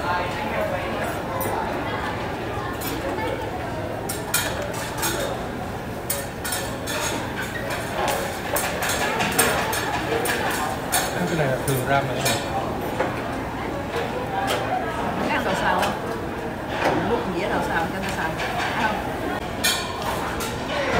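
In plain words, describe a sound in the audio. Chopsticks click and scrape against a plate.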